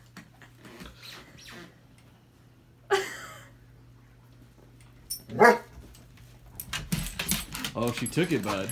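A dog squeaks a rubber toy in short, shrill bursts.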